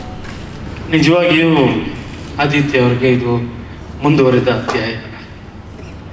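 A middle-aged man speaks into a microphone over loudspeakers.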